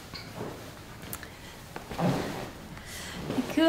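A young woman laughs softly nearby.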